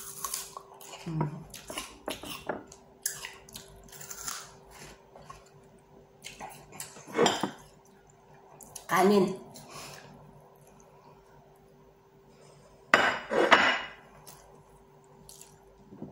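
A woman chews food noisily close by, smacking her lips.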